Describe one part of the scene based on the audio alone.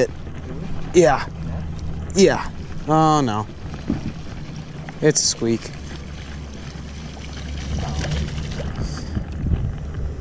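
A fishing reel winds and clicks.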